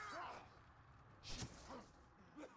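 Blows land with heavy thuds in a fight.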